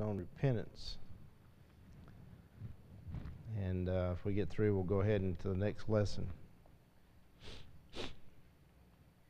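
An older man reads aloud calmly through a microphone.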